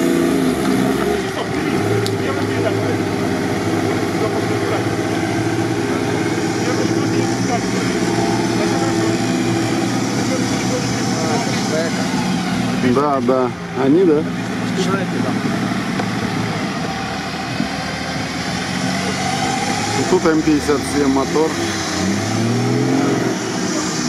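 An off-road vehicle's engine roars and strains loudly.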